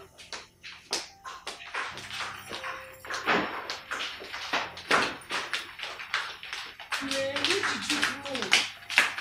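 High heels click on a hard tiled floor.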